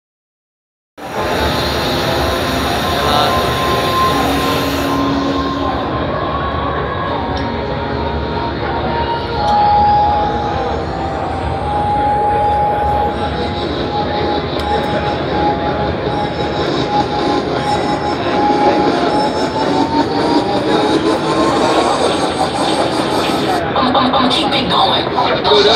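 A crowd chatters in a large, echoing hall.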